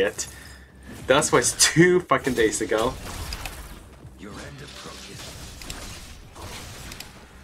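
Swords clash and slash in quick, bright strikes.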